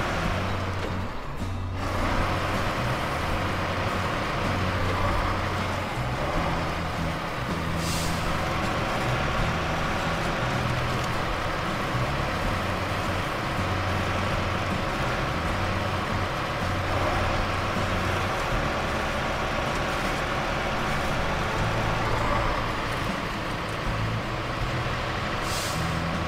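A truck's diesel engine rumbles steadily as it drives along a rough dirt track.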